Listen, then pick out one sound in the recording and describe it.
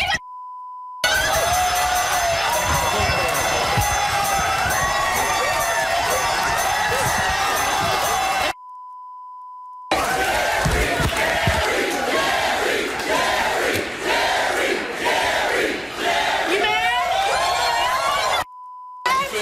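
A studio audience cheers and shouts loudly.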